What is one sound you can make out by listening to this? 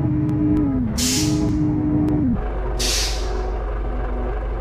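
Air brakes hiss sharply twice.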